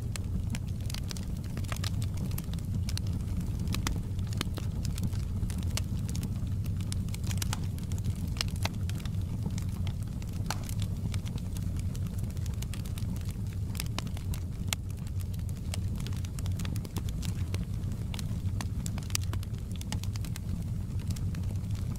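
Flames roar with a low, steady rumble.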